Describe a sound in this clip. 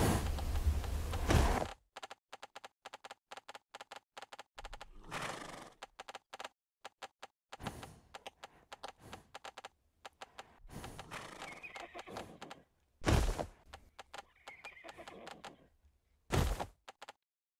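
A horse's hooves clatter in a quick, steady gallop.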